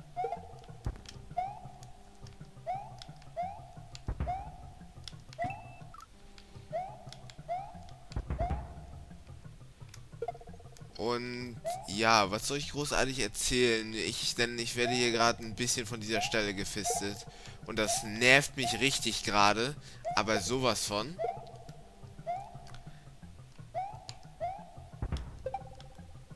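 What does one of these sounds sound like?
Electronic game sound effects blip and chirp.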